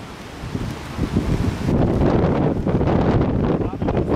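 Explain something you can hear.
A cloth flaps in the wind.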